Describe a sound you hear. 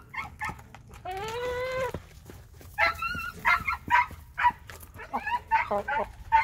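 Hens cluck and squawk close by.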